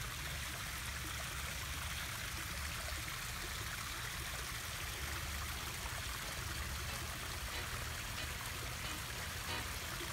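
A small waterfall splashes steadily into a pond.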